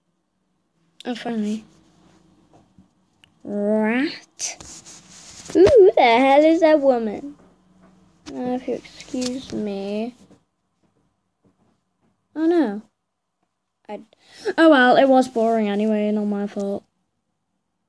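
A young girl talks animatedly, close to a microphone.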